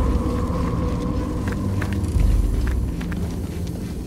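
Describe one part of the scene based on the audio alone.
Footsteps thud on a stone floor in an echoing passage.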